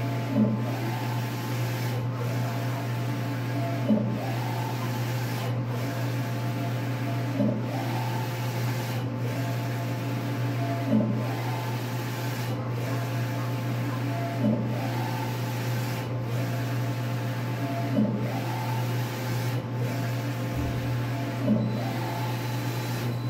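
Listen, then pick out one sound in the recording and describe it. A print head whirs back and forth across the printer in a steady rhythm.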